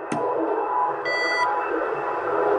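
A radio gives a short electronic beep.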